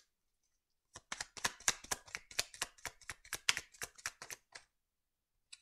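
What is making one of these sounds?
Playing cards riffle and flick as a deck is shuffled.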